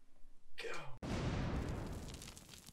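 A confetti cannon pops with a burst.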